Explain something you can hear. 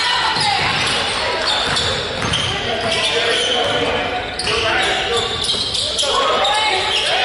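Spectators chatter and cheer in a large echoing gym.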